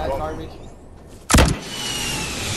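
A rocket launcher fires with a whoosh.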